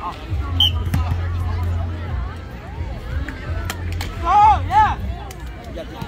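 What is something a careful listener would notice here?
A crowd of men and women chatter and shout outdoors.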